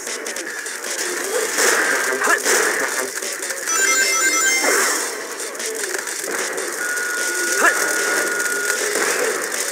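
Video game music plays with a driving beat.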